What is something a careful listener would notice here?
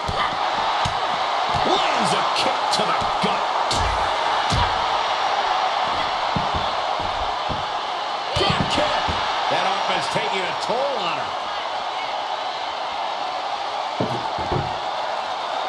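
Blows and body slams thud sharply.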